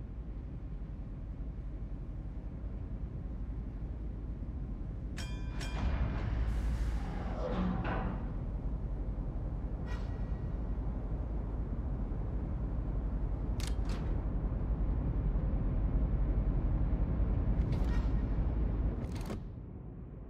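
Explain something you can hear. A warship's engine rumbles low and steady over the sea.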